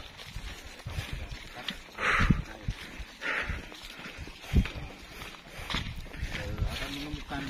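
Tall grass and leaves swish against a person walking through them.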